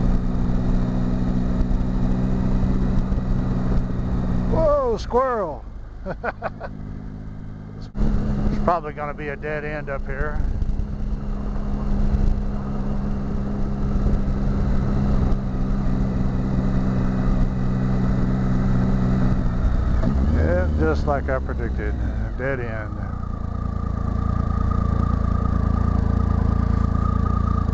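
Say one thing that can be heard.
Tyres roll over a dirt road.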